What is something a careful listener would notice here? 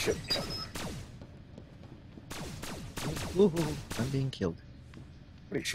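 A laser pistol fires several sharp shots.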